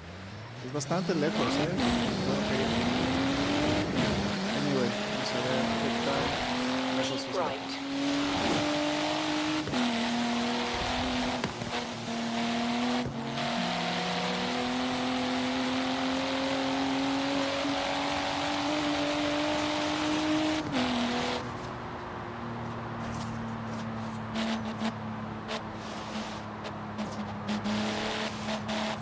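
A sports car engine revs hard and climbs in pitch through the gears.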